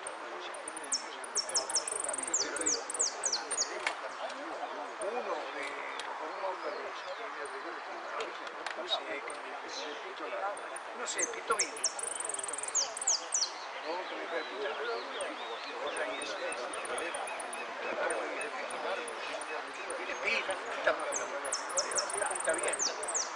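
A saffron finch sings in high, bright bursts.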